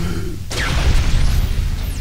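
A gun fires with a sharp blast.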